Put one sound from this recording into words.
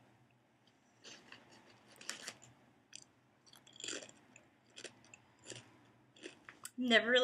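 A young woman crunches potato chips close to the microphone.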